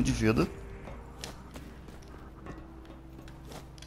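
Footsteps thud on a hard rooftop.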